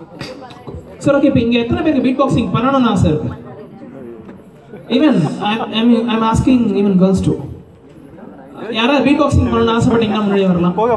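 A young man sings loudly into a microphone over loudspeakers.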